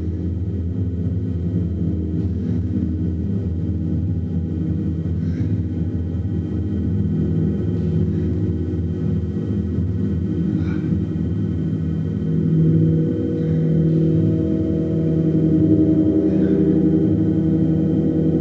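A large gong hums and swells in a deep, steady drone.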